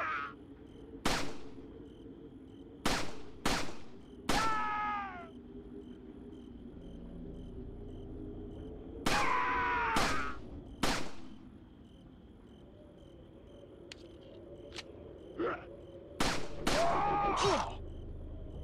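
A handgun fires sharp shots that ring and echo.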